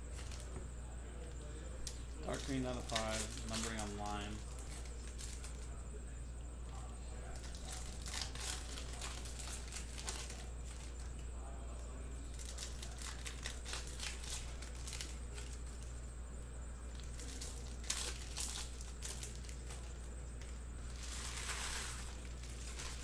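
Foil wrappers crinkle and tear as card packs are ripped open.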